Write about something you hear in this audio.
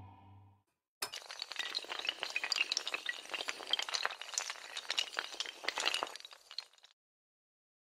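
Rows of tiles topple and clatter against each other.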